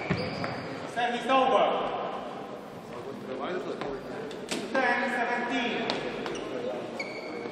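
Young women players talk briefly with each other.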